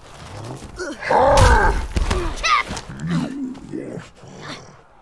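A man speaks in a deep, gruff voice, close by.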